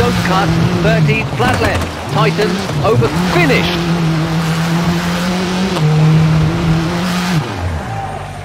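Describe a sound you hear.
A rally car engine roars and revs, shifting up and down through the gears.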